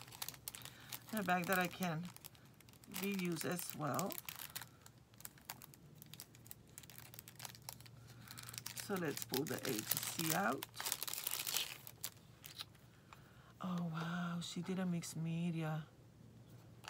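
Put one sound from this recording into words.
Paper and plastic crinkle and rustle in hands.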